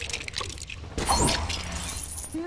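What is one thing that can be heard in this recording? Small coins jingle and chime as they are picked up.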